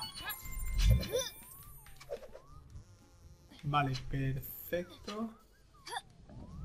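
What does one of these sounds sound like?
Cartoonish springy sound effects bounce and chirp as a game character jumps.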